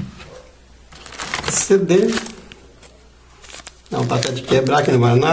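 A paper sleeve rustles as a hand handles it.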